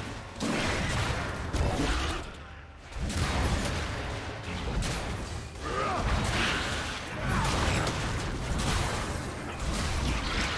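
Magic blasts and impacts crackle and boom during a fight.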